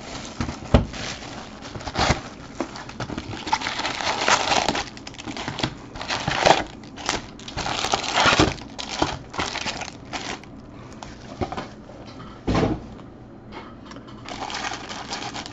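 Foil card packs crinkle and rustle as they are handled.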